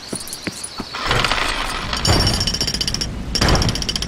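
A jackhammer pounds rapidly on stone.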